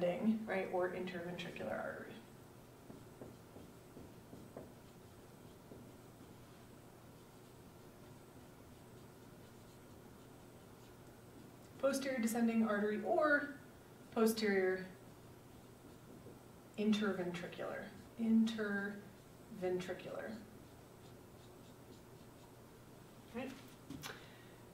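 A woman speaks calmly to an audience, with a slight room echo.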